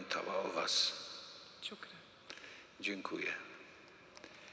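An older man speaks calmly through a microphone in a large echoing hall.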